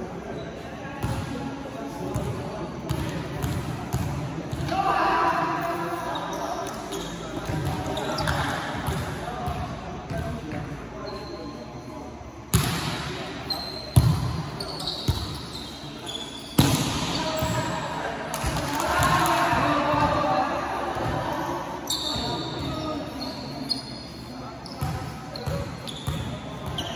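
A volleyball smacks off hands and arms with sharp thuds.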